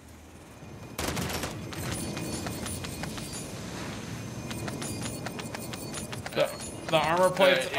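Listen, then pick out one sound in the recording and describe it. Gunfire rattles rapidly from a game.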